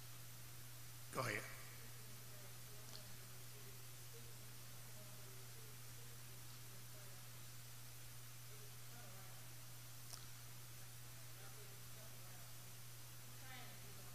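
A man speaks slowly and calmly through a microphone in a large, echoing room.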